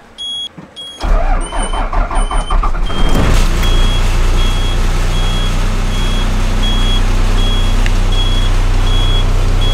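A large diesel engine cranks, starts and idles with a deep rumble.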